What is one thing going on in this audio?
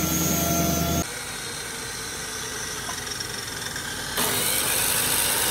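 A miter saw whines.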